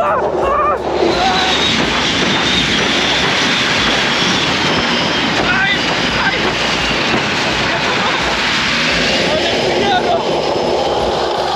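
Water rushes and sprays behind a speeding boat.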